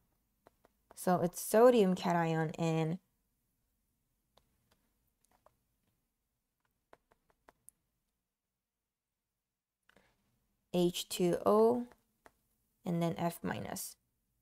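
A young woman explains calmly, close to a microphone, with long pauses.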